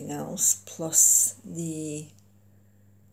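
A middle-aged woman speaks calmly, close to a microphone.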